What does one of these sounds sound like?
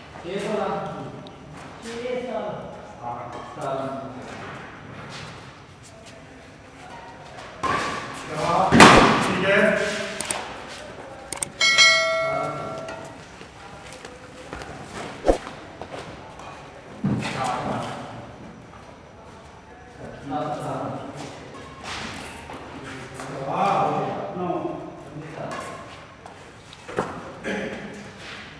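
Young men talk and call out nearby.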